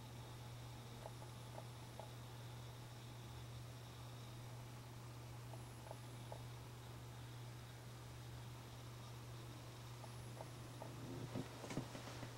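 A music box plays a slow tune with sparse, tinkling metal notes.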